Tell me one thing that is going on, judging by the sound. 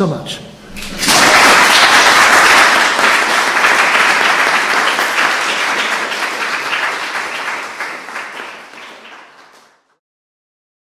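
An audience applauds loudly, then the clapping fades.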